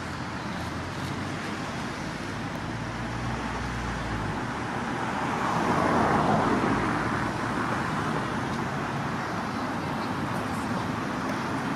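Traffic rumbles steadily outdoors.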